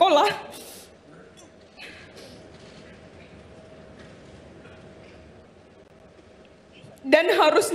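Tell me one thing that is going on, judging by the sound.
A young woman sobs quietly.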